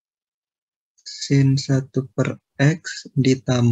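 A man speaks with animation through an online call.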